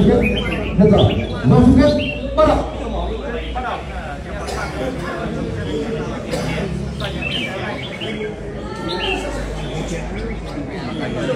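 Caged birds sing loud, rapid chirping songs.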